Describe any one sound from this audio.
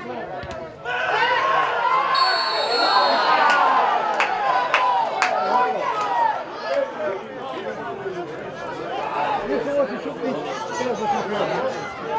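Young men shout and cheer in the distance outdoors.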